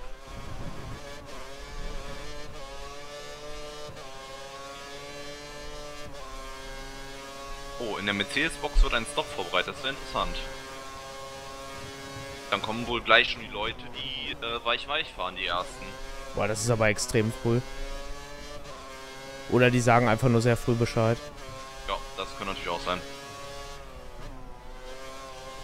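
A racing car engine whines steadily at high revs, rising and falling as it shifts gears.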